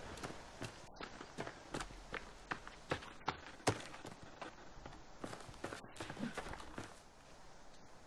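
Footsteps rustle quickly through grass and undergrowth.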